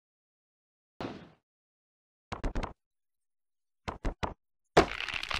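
Heavy thuds of wrestling slams and blows land in quick bursts.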